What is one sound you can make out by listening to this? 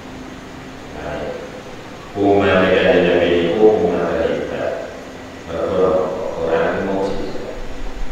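A middle-aged man recites in a chanting voice through a microphone.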